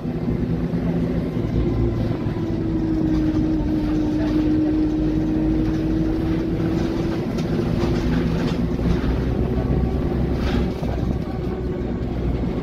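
The bus interior rattles and creaks as it moves.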